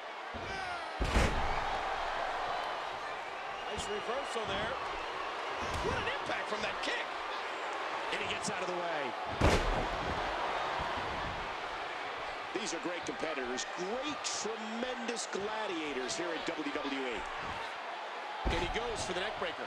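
Heavy bodies slam down onto a wrestling ring mat with loud thuds.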